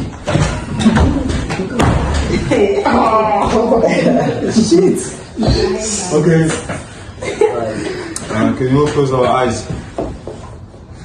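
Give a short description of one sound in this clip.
Several young men laugh and talk loudly together close by.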